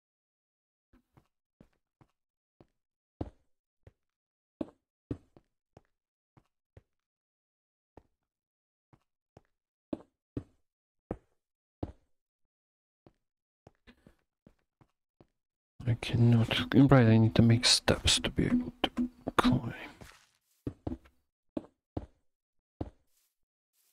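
Blocks thud as they are placed.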